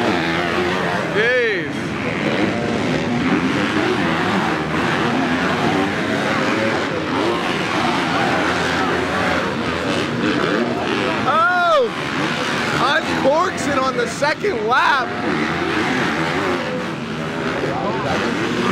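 Dirt bike engines rev and whine loudly outdoors.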